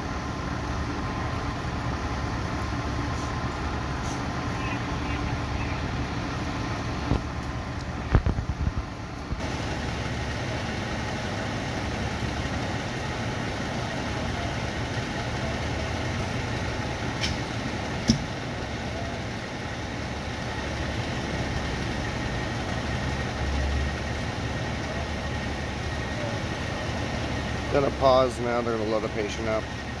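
A large engine idles with a steady low rumble nearby.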